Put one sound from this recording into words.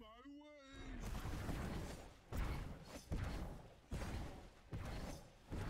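Magical blasts and strikes burst in quick succession.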